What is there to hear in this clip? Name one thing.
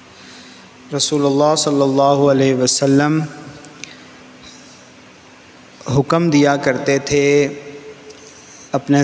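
A man chants loudly into a microphone in a reverberant hall.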